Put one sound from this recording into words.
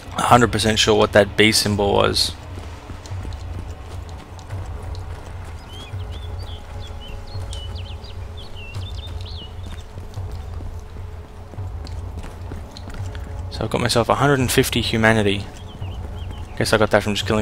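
Footsteps thud quickly over hard ground.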